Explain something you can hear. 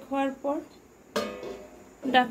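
A metal lid clinks down onto a pot.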